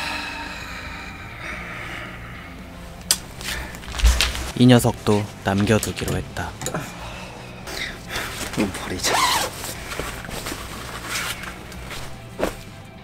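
Clothes rustle as they are handled.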